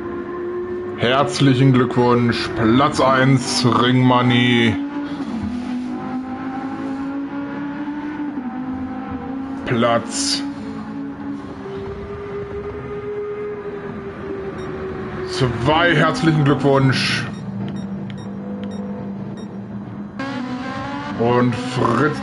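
Racing car engines rev up and down sharply as gears change.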